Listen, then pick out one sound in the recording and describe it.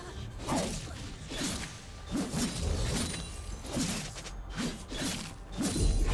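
Fighting sound effects whoosh and crackle in bursts.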